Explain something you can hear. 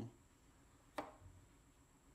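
A plastic battery case clicks as it is pressed onto battery cells.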